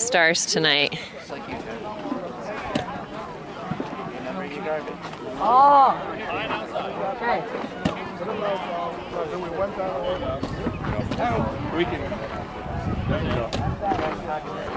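A group of people chat quietly outdoors.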